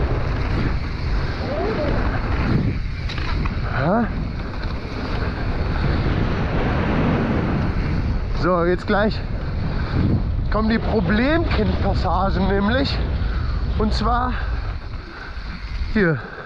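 Bicycle tyres roll and crunch over a dirt track.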